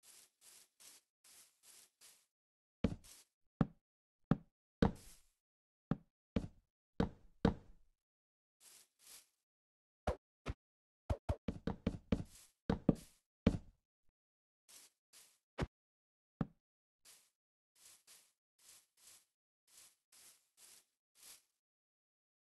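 Footsteps patter softly on wood and grass.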